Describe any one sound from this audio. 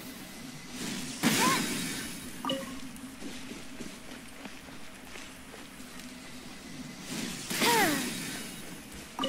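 Electric blasts crackle in bursts from a video game.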